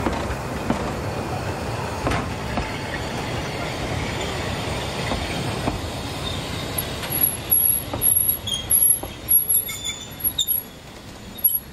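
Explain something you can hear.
Train carriages rattle and clank as they roll slowly past close by.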